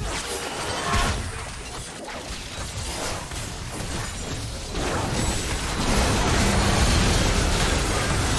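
Explosive impacts boom during a large game battle.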